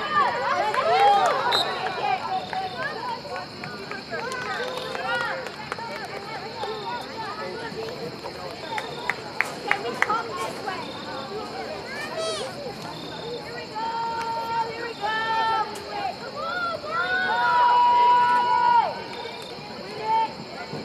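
Young women shout and cheer outdoors from close by.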